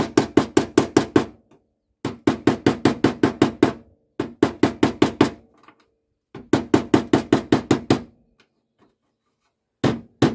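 A hammer taps rapidly on metal in quick bursts.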